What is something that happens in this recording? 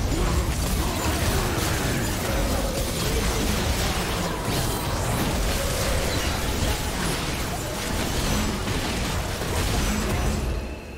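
Game spells crackle and burst during a battle.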